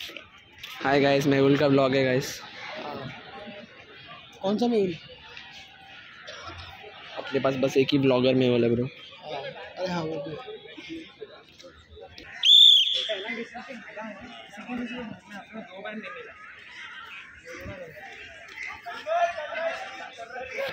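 Young people call out and chatter in the distance outdoors.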